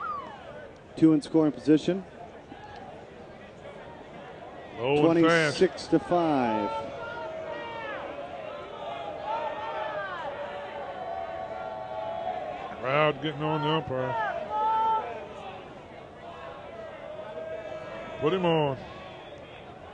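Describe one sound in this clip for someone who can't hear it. Spectators shout and cheer in the stands of an outdoor ballpark.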